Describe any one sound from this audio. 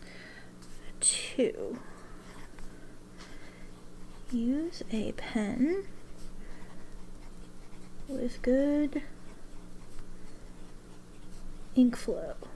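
A fountain pen scratches softly across paper.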